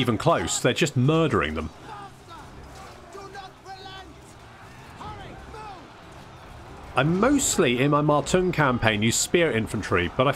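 Many soldiers tramp and clatter as a large army marches.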